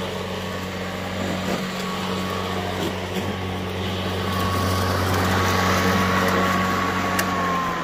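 A lawn mower motor hums steadily close by.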